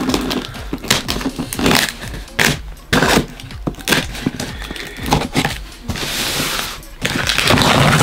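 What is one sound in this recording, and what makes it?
A knife slices through packing tape.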